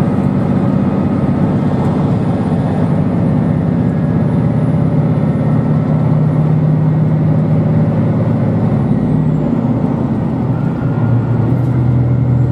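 A train hums and rumbles steadily as it rolls along the track.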